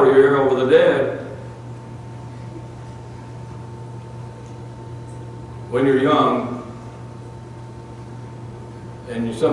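An elderly man speaks slowly through a microphone, with long pauses.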